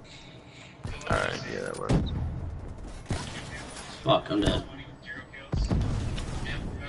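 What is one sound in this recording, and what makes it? Gunshots fire loudly in a video game.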